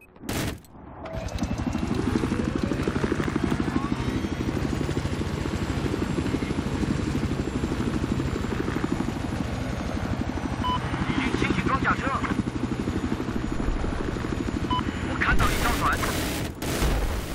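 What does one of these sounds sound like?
A helicopter's rotor thumps steadily in fast beats.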